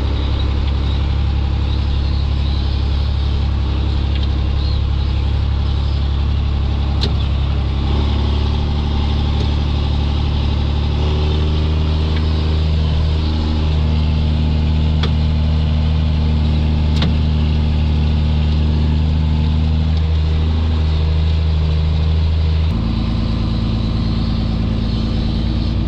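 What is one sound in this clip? A tractor cab rattles and vibrates over rough ground.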